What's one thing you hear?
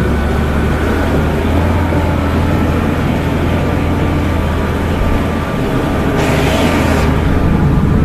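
Tyres crunch and rattle over a rough stony track.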